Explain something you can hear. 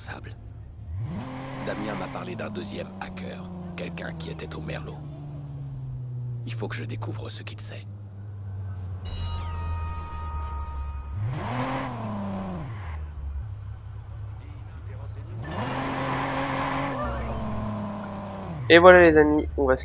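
A car engine revs hard and then winds down.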